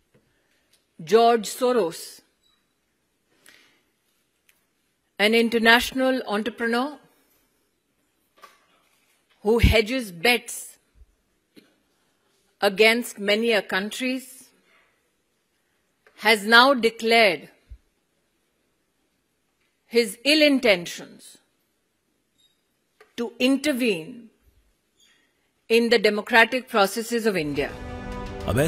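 A middle-aged woman speaks firmly into a microphone in short phrases with pauses.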